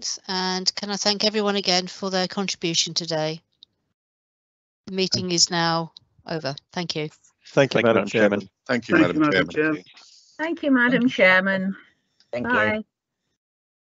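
An elderly woman speaks calmly through an online call.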